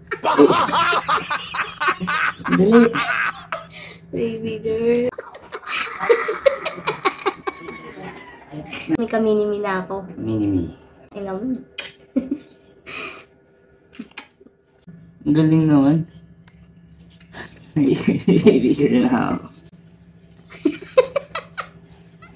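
A young man laughs loudly and excitedly close by.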